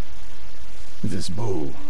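An older man answers in a low, calm voice.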